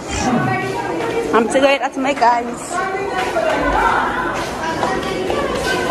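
Footsteps go down a stairway.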